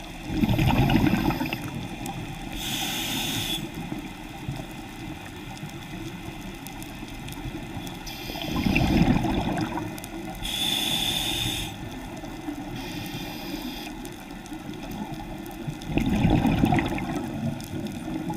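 Bubbles from a diver's exhaled breath rumble and gurgle underwater every few seconds.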